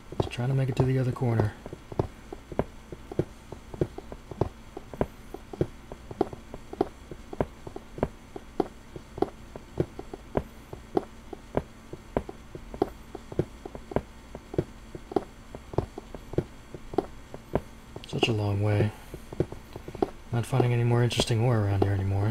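A pickaxe chips at stone with quick, steady knocks.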